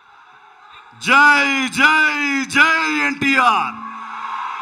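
A man calls out loudly in long rising and falling cries through a microphone.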